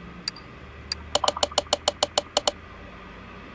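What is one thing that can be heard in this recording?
A game menu gives a quick, even series of short clicking ticks.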